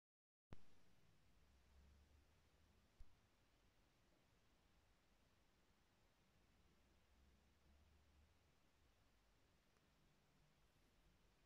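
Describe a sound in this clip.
A record spins on a turntable with a soft, steady crackling hiss.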